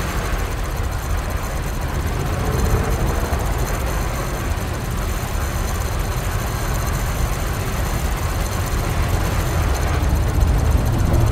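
A spaceship engine rumbles steadily.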